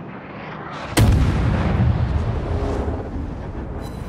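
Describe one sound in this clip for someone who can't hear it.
A large explosion roars and rumbles.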